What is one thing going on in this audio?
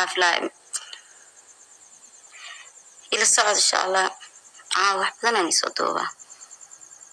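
A young woman talks animatedly into a phone video call, close by.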